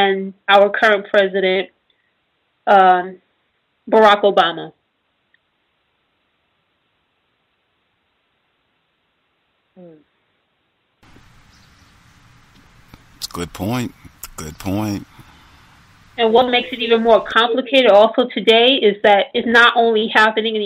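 A woman speaks calmly, with pauses.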